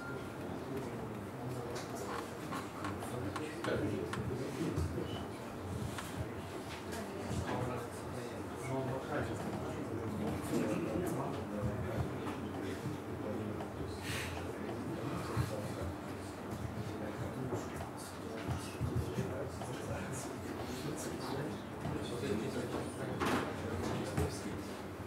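Laptop keys click as someone types.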